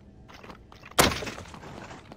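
A sword strikes a skeleton with a sharp hit.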